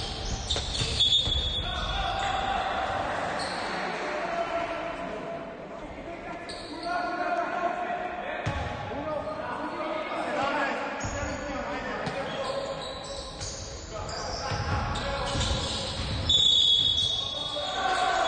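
Basketball shoes squeak sharply on a wooden floor in a large echoing hall.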